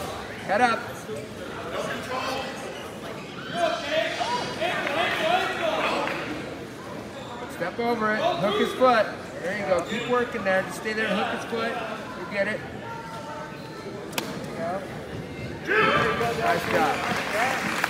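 Wrestlers thump and scuffle on a mat.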